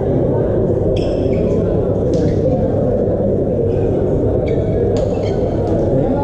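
A volleyball is struck by hand, echoing in a large hall.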